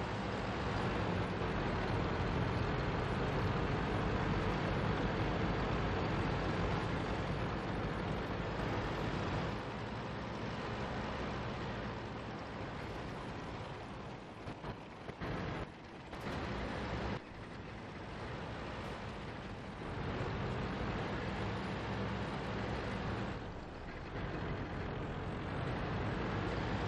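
A heavy tank engine rumbles and clanks steadily.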